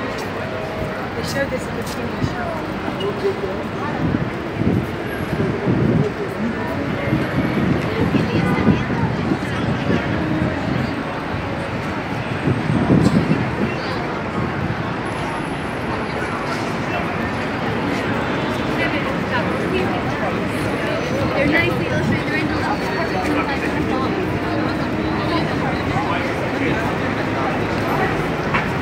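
Traffic rumbles steadily through a busy street.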